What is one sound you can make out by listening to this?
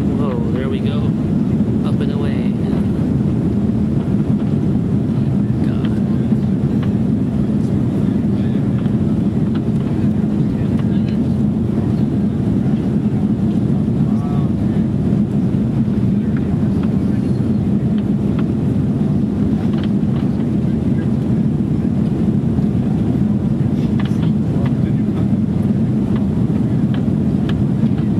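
A jet engine roars steadily as a plane takes off.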